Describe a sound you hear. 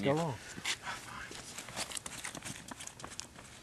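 Footsteps move away on pavement outdoors.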